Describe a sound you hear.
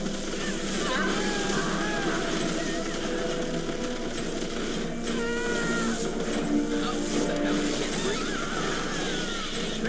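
Giant insects screech and shriek.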